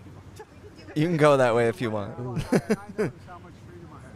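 A middle-aged man laughs loudly close to a microphone.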